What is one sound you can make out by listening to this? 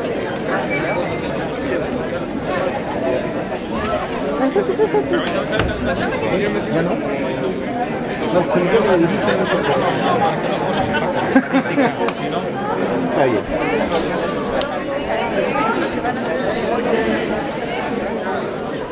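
A large crowd of men and women chatter outdoors.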